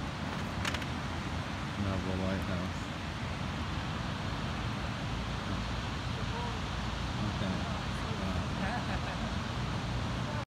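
Waves break and wash steadily onto a beach, outdoors in wind.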